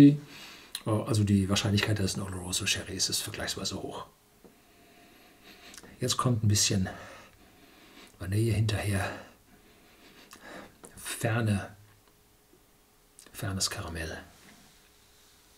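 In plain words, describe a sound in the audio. An elderly man speaks calmly and close to a microphone, in short bursts with pauses.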